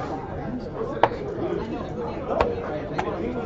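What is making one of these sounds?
A game piece clacks down onto a board.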